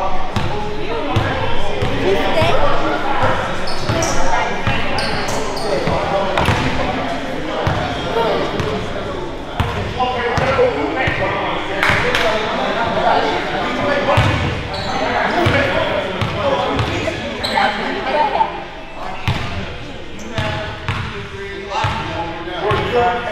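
A crowd of men and women chatter loudly in a large echoing gym.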